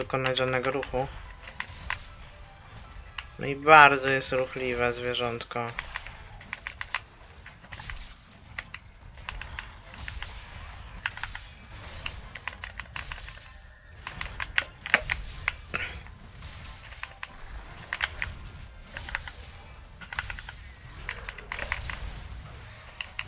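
Blades strike with sharp, repeated hits.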